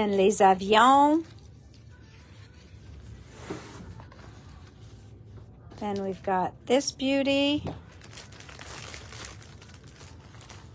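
Sheets of paper rustle and slide as they are turned over.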